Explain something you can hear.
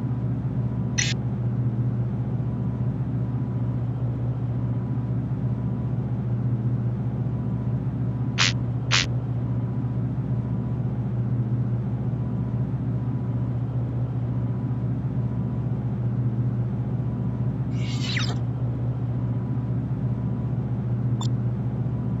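Short game interface clicks sound now and then.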